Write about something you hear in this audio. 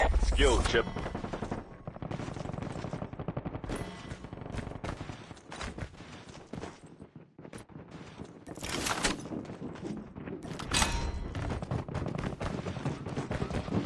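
Footsteps patter quickly on a hard roof.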